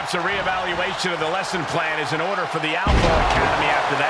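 Bodies slam heavily onto a wrestling mat.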